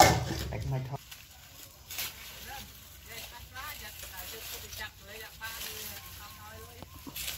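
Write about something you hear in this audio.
Leaves rustle as hands pick through plants.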